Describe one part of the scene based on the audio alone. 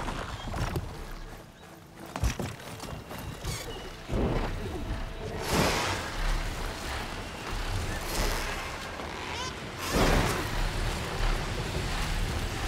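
A large mechanical flying creature beats its wings with loud whooshes.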